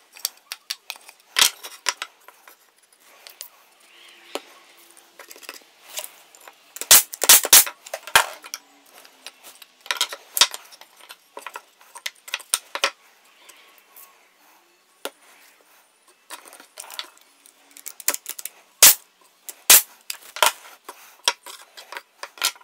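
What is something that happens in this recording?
Wooden pieces knock against each other on a workbench.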